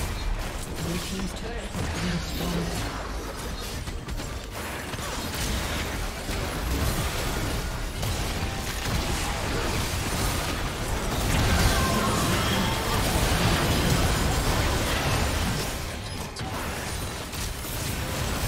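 Fantasy battle effects crackle, whoosh and boom in quick succession.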